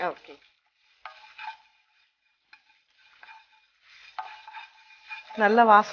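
A spatula scrapes and stirs in a frying pan.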